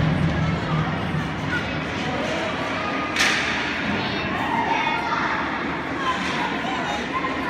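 Skate blades scrape and hiss across the ice.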